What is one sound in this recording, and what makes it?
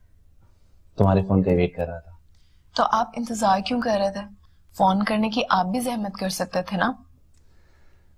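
A woman speaks with feeling over an online call.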